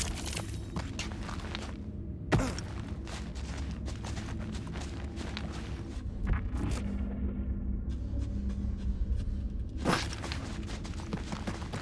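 Footsteps crunch quickly on rocky ground.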